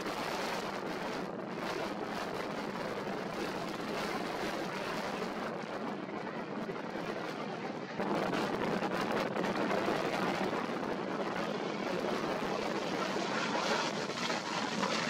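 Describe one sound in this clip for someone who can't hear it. A jet airliner roars loudly as it climbs overhead.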